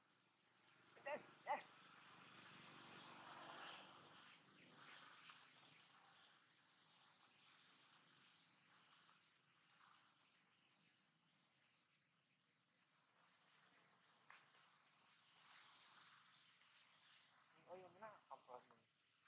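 A young monkey squeals in short, high cries.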